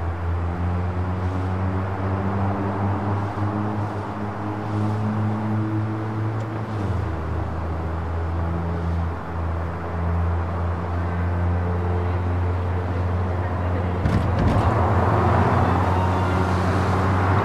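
A car engine hums steadily and shifts pitch as the car speeds along.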